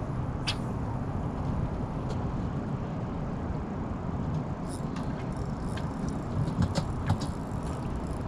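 Small waves lap against rocks.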